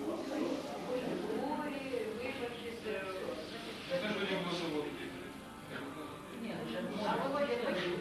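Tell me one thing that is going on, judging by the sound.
An elderly woman talks calmly, close by.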